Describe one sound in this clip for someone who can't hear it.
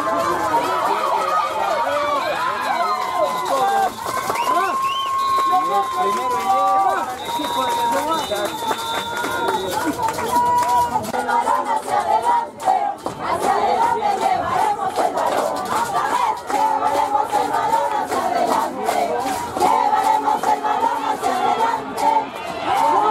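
A crowd of young players and onlookers shouts and chatters outdoors.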